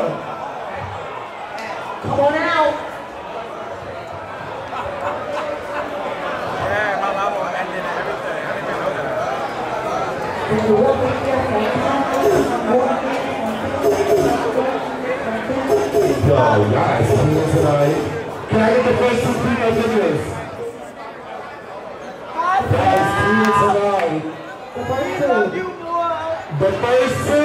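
A large crowd cheers and chatters in a big echoing hall.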